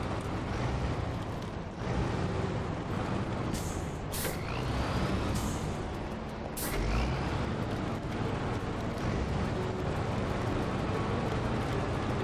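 A heavy truck engine rumbles steadily as the truck drives.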